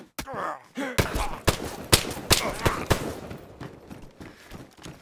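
An axe strikes a body with heavy, repeated thuds.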